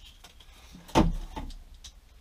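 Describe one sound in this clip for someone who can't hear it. A broom handle knocks into a plastic holder.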